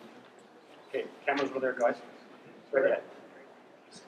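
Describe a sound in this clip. An elderly man speaks briefly in a room with a slight echo.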